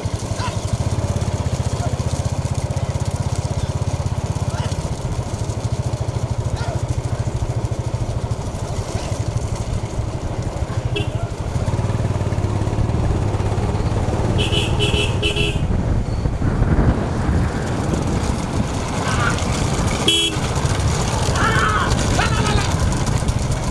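Bullocks' hooves clatter on asphalt at a fast trot.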